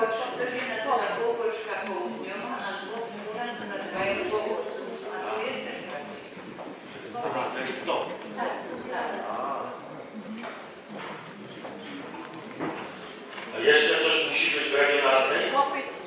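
A crowd of people murmurs and talks nearby in a reverberant hall.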